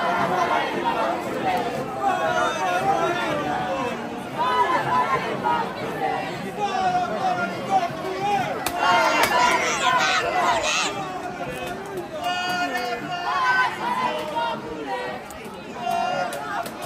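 A crowd of men, women and children talk and chatter all around, close by.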